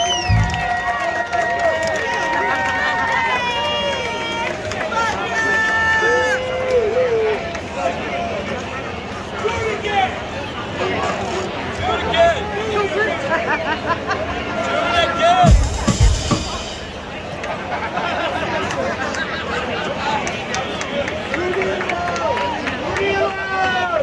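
A rock band plays loudly outdoors.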